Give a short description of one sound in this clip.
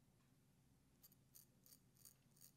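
A razor scrapes across stubble in short strokes.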